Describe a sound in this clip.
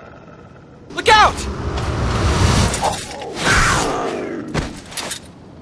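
A magical blast roars and crackles, then fades.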